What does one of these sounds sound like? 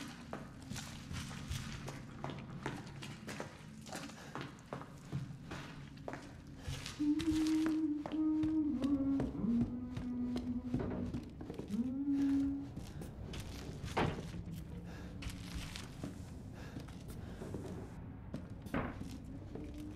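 Slow footsteps creak and thud on wooden floors and stairs.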